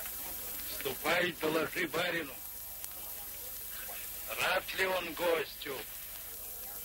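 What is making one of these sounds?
A man speaks with animation, heard through an old, hissy recording.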